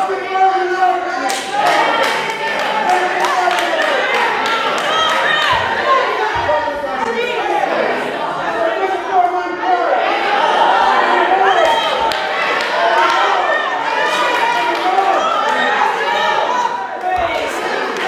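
A man preaches loudly and with passion through a microphone in an echoing hall.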